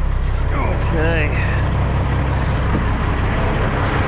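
A truck door clicks open.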